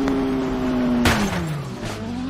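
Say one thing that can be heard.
A motorcycle crashes into a barrier with a sharp thud.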